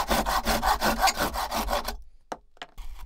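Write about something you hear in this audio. A hand saw rasps quickly through wood.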